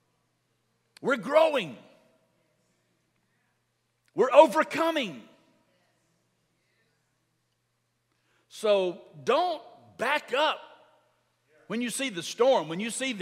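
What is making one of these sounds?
A middle-aged man speaks with animation through a microphone, in short bursts with pauses.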